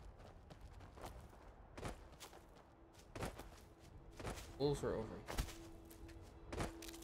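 Footsteps crunch over rough ground and brush through dry bushes.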